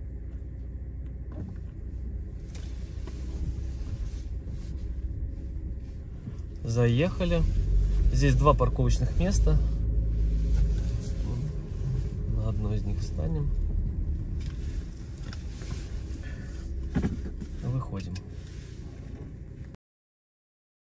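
A car engine hums low.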